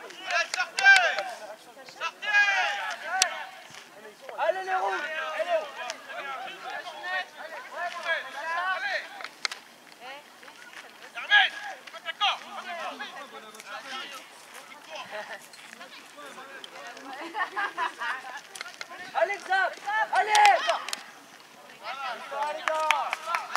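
Young boys shout and call out to each other across an open field.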